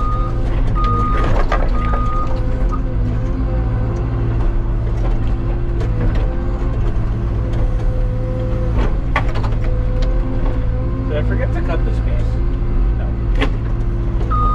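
Logs knock and crack as they are grabbed and dropped.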